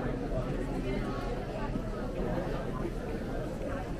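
Rolling suitcase wheels rumble across the floor.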